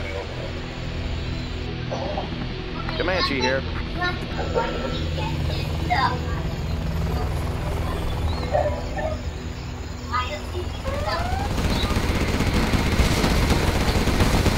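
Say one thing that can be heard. A helicopter's rotors thump steadily.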